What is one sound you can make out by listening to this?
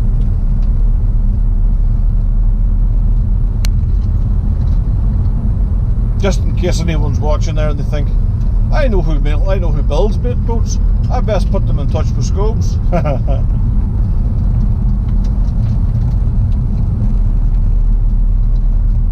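A car engine hums steadily with road rumble inside the cabin.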